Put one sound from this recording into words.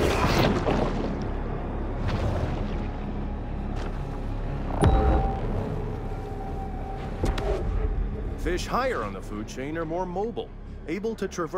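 Water swishes and rumbles as a fish swims underwater.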